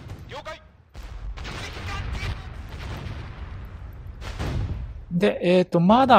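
A large explosion rumbles.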